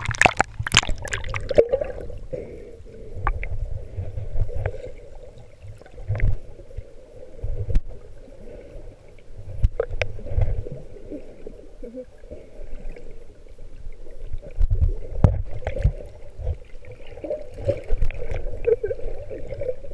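Breath rushes through a snorkel in bursts of bubbles.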